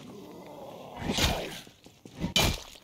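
A gun fires loud shots.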